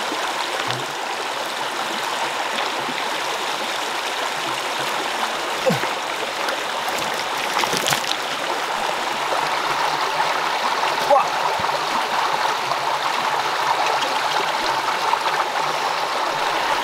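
Hands squelch and splash in wet mud and water.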